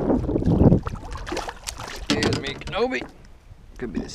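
Water splashes as a hand lifts a fish from the lake.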